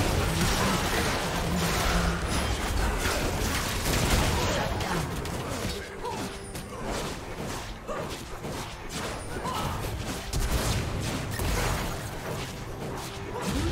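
Magic spells crackle and blast in a fast battle.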